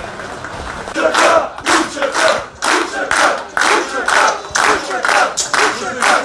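A group of men sing loudly together.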